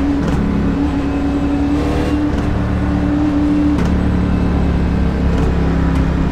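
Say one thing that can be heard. A race car engine roars loudly at a high pitch, then drops in pitch.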